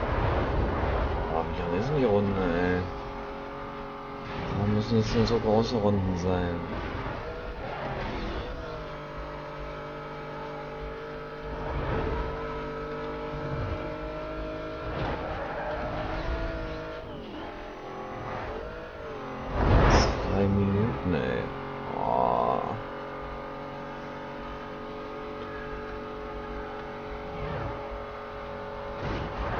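A racing car engine roars steadily at high speed.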